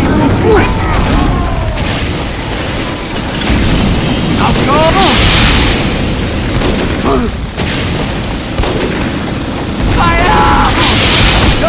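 A game's healing beam gun hums with a crackling buzz.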